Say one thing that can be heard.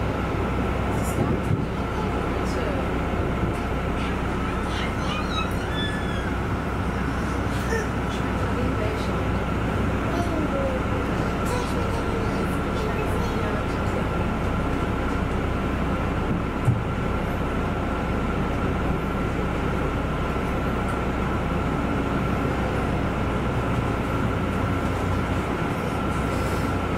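A train's motor hums with a steady whine.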